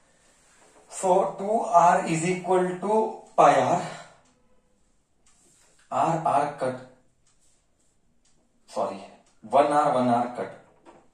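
A man explains calmly into a close microphone.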